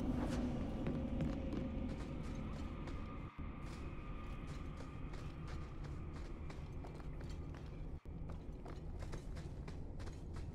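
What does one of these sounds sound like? Footsteps tread at a steady pace.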